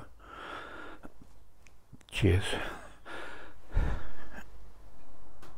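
An elderly man speaks calmly and close into a microphone.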